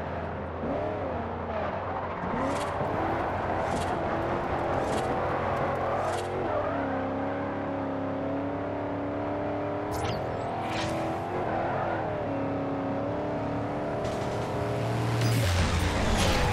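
A car engine roars and revs up and down steadily.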